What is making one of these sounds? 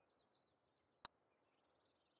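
A golf club strikes a ball with a crisp click.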